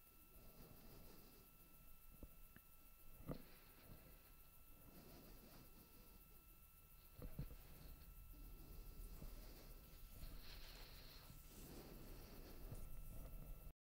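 A rocket engine rumbles low and far off.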